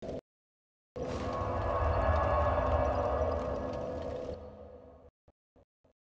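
A magical burst swells up and slowly fades.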